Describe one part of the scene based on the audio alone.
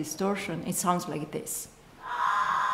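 A woman speaks calmly into a microphone in an echoing room.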